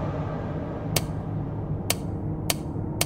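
A safe's dial clicks as it turns.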